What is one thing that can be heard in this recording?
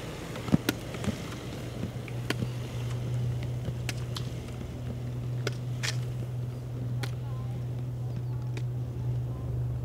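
Inline skates clatter and roll on asphalt as skaters pass.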